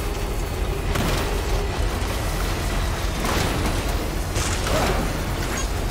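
Tyres bump and jolt over rocks.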